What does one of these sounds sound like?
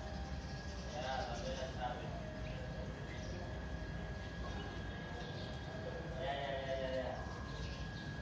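Boys call out to each other at a distance outdoors.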